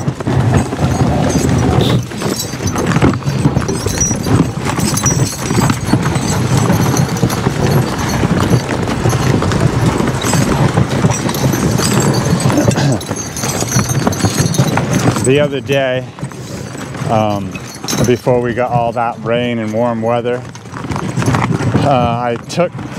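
Horses' hooves thud in the snow.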